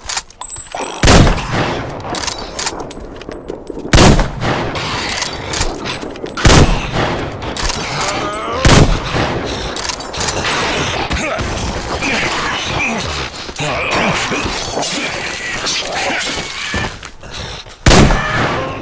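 A heavy gun fires loud blasts.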